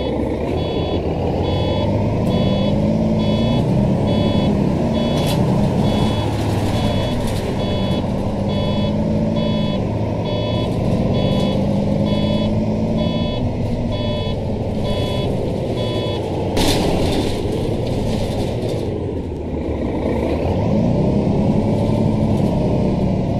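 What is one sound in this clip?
A bus engine hums and rumbles steadily, rising and falling in pitch.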